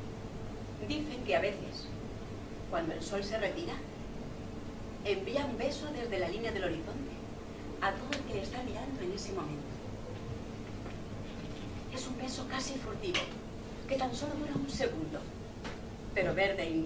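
A woman reads out with animation through a microphone.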